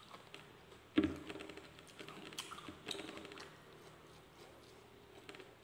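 A man chews food noisily with his mouth open.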